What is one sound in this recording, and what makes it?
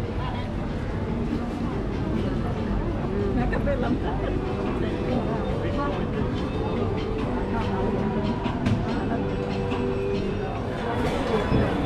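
People's footsteps shuffle along a busy street.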